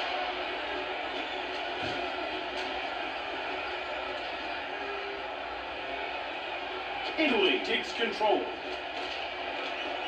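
A game crowd roars steadily through a small television speaker.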